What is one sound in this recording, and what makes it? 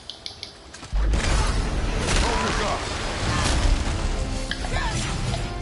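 Heavy blows and crashes of a fierce fight boom loudly.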